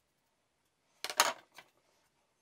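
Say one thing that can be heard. A thin metal sign clatters as it is set down onto tins.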